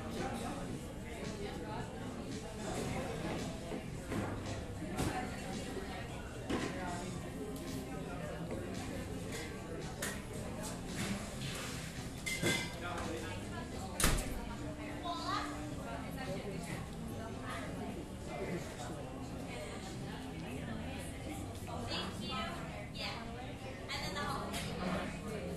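A crowd of people murmur and chatter indoors.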